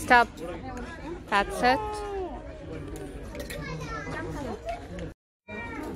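Metal clothes hangers clink together.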